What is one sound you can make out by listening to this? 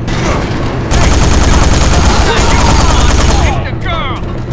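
An explosion booms with a deep roar.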